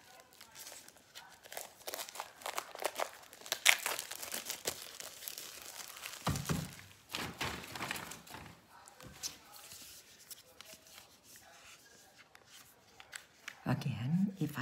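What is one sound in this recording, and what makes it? Paper and packaging rustle and crinkle in a woman's hands.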